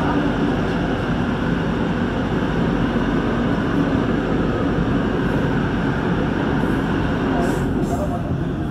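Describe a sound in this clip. An electric commuter train roars through a tunnel, heard from inside a carriage.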